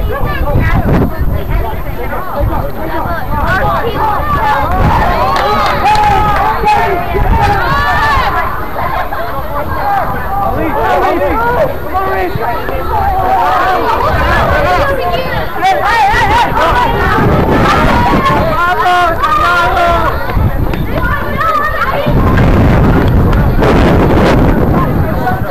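Young men shout and call out to each other across an open field outdoors.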